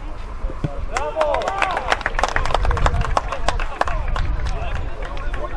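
Players cheer and shout loudly after a goal.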